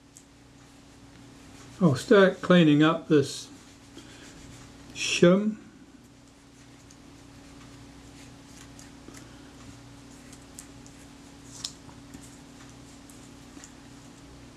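A cotton swab rubs and scrapes softly against a small metal ring.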